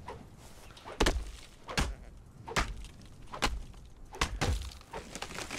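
A pickaxe strikes a tree trunk with sharp, repeated knocks.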